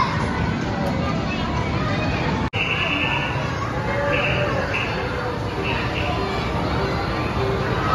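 Arcade machines jingle and beep loudly in a busy, echoing hall.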